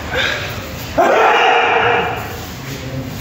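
Young men shout together sharply in an echoing hall.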